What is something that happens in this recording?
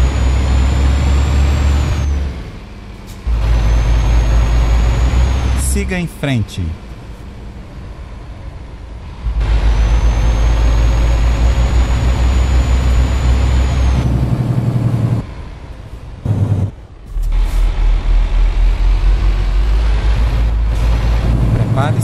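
A truck engine hums and rumbles, rising and falling as it changes gear.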